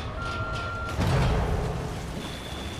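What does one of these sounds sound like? A body splashes into deep water.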